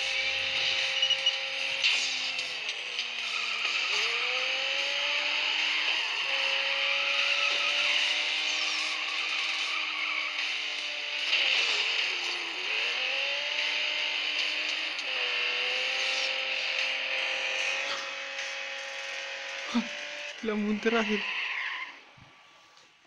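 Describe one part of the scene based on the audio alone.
A sports car engine roars and revs up and down at high speed.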